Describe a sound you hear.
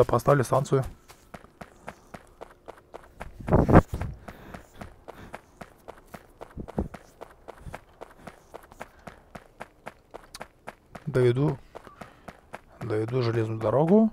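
Footsteps patter quickly and steadily over dry ground.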